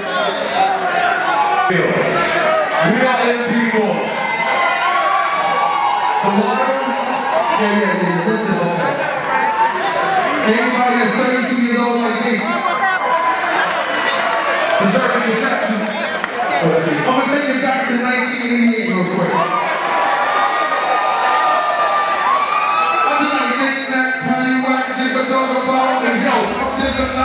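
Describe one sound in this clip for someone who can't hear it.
A man raps loudly into a microphone over a loudspeaker.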